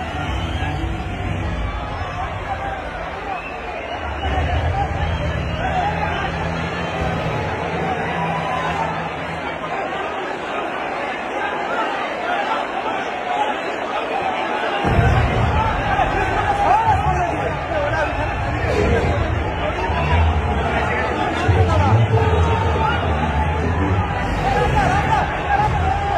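A large crowd chatters and shouts in a big echoing hall.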